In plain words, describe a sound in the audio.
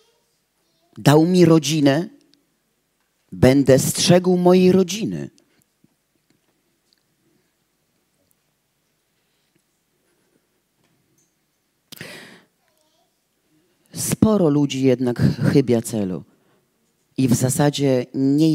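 A woman speaks with animation through a microphone, in bursts with long pauses.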